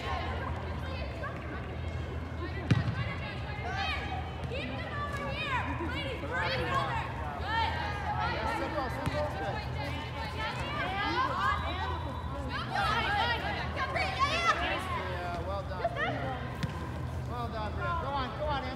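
Young women shout and call out to each other across a large echoing hall.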